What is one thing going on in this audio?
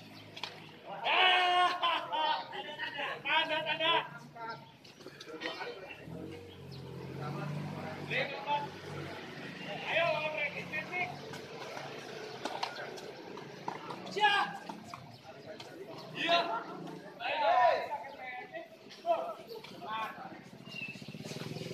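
Men talk and call out across an outdoor court.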